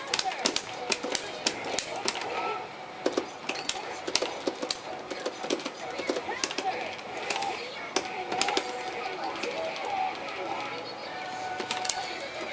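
Energetic game music plays throughout.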